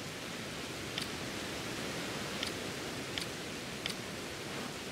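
Short electronic menu clicks sound as pages turn.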